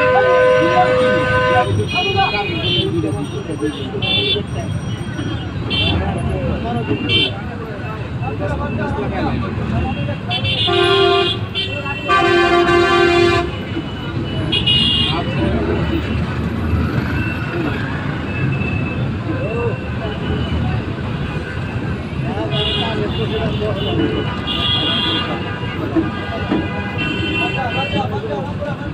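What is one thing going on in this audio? A large crowd chatters and shouts nearby outdoors.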